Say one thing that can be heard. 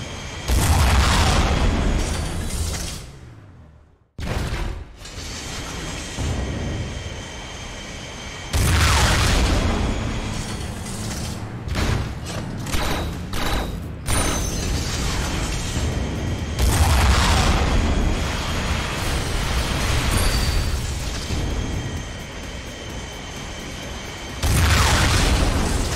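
A jet engine roars loudly, surging and fading in waves.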